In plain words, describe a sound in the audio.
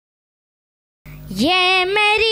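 A young boy recites in a melodic chant through a microphone.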